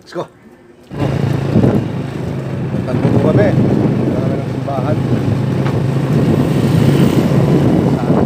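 A motorbike engine hums steadily while riding.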